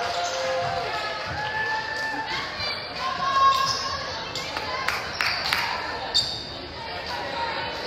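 Young women and girls shout and cheer in a large echoing gym.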